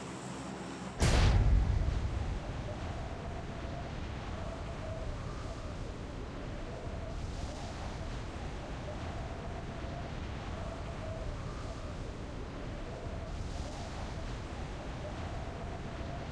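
Wind rushes past a skydiver in freefall.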